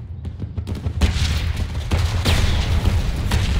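Heavy shells explode with deep, rumbling booms.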